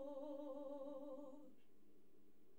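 A young woman sings a long held note with a wavering vibrato, close to a microphone, and then stops.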